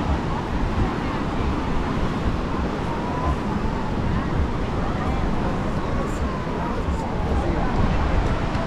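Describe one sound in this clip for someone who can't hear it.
Men and women chatter and call out in the distance.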